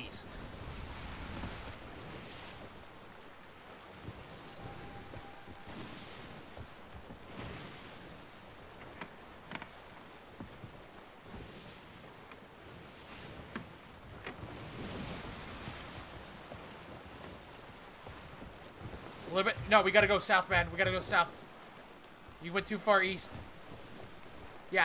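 Rough sea waves wash against a wooden ship's hull.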